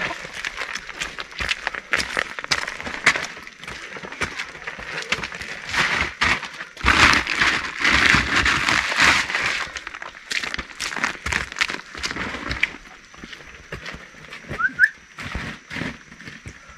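Footsteps squelch on wet, muddy ground.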